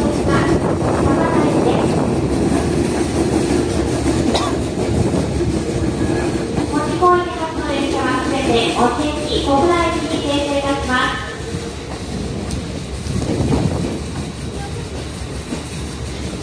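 A train rumbles and clatters slowly along a track.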